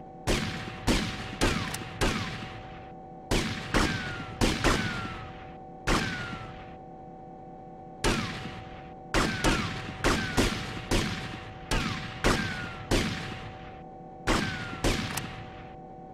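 Gunshots fire in quick bursts, each ringing out with a short echo.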